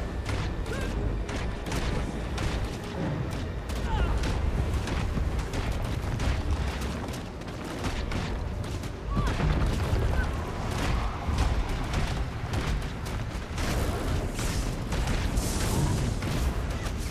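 Swords clash and magic effects burst with sharp impacts throughout a fast battle.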